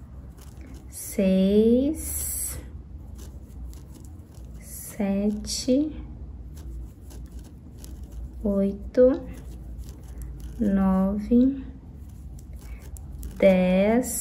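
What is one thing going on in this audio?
A crochet hook softly rustles and pulls through yarn.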